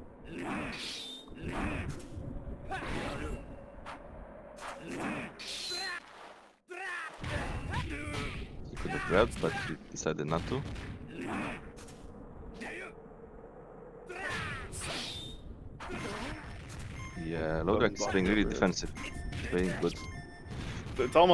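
Sword slashes and hits clash sharply in a fighting game.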